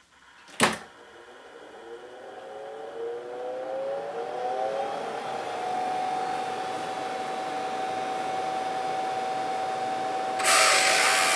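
An electric motor whirs up to speed with a rising whine, then hums steadily.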